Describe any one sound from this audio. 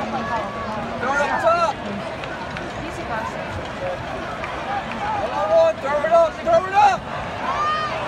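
Nearby spectators shout and yell with excitement.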